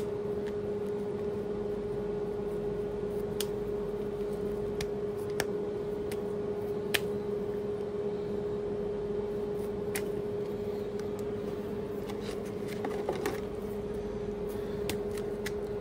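Gloved hands handle cheese slices with soft clicks and rustles.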